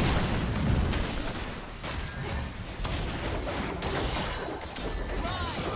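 Game spells blast and crackle in a busy fight.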